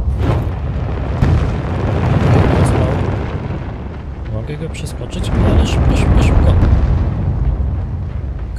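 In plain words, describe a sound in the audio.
A fire roars and crackles.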